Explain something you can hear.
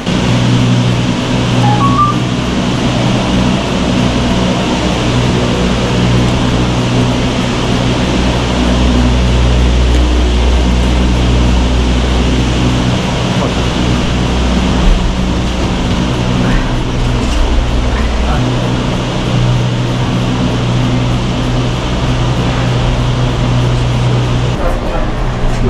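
Cable car machinery hums and rumbles steadily.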